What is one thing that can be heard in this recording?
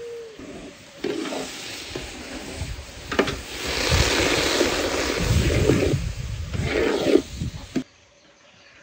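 A metal skimmer scrapes and stirs through wet salt in a large metal basin.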